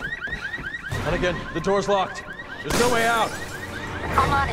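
A man shouts urgently nearby.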